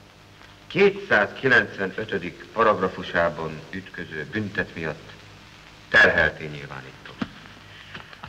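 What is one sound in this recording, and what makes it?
A middle-aged man speaks firmly and close by.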